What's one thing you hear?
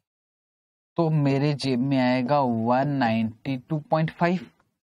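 A man speaks clearly into a close microphone.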